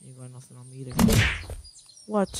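A pickaxe strikes with a heavy thud.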